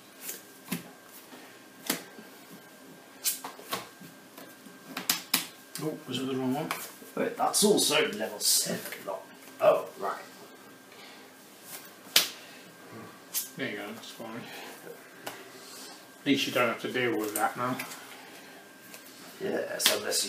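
Playing cards tap and slide on a tabletop.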